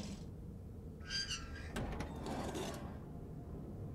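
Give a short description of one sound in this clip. A heavy metal cover scrapes and clangs.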